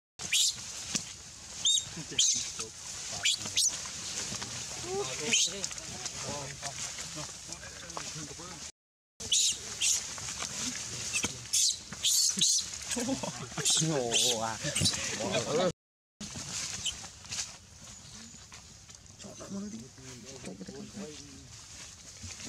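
A baby monkey squeals and cries shrilly.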